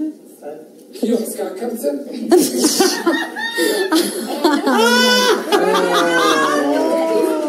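Several young women laugh loudly close by.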